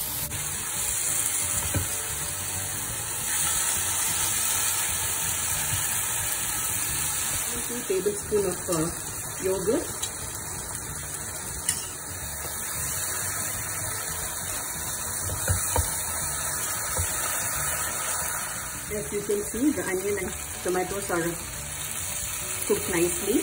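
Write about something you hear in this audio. A plastic spatula scrapes and stirs against a pan.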